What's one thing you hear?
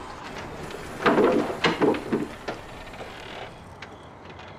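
A scooter engine hums as the scooter rolls along.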